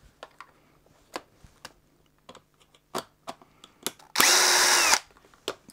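Plastic parts click and knock as they are handled.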